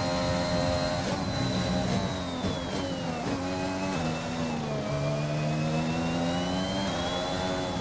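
A racing car engine whines loudly, its pitch dropping as the car slows through a bend and rising again as it speeds up.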